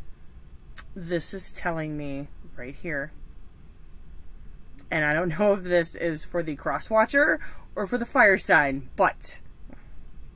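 A middle-aged woman talks calmly and closely into a microphone, pausing between phrases.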